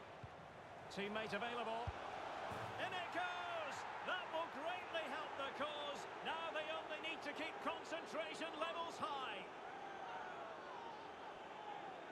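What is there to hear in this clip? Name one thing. A large crowd roars and cheers loudly after a goal.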